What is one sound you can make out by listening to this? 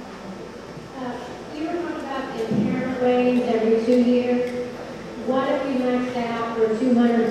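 A man speaks calmly through a loudspeaker in an echoing hall.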